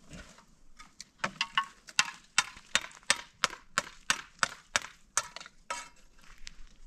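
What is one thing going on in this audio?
A trowel scrapes and taps mortar on concrete blocks.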